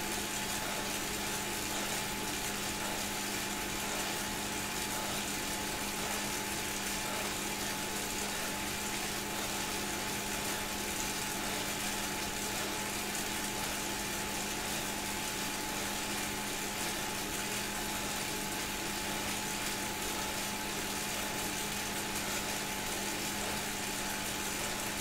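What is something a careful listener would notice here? An indoor bike trainer whirs steadily.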